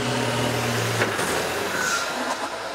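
Metal crashes and crunches as buses collide.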